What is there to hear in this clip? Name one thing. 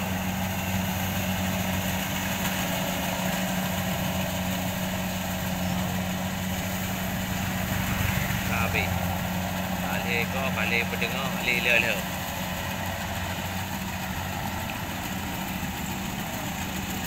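A combine harvester drones at a distance while harvesting rice.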